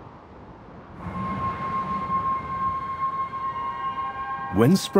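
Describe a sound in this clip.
Wind blows snow across open ground.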